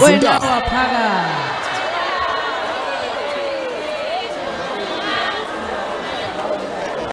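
A large crowd of men and women talk and call out all around, echoing under a high roof.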